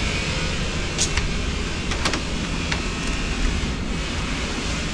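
Knuckles knock on a wooden door several times.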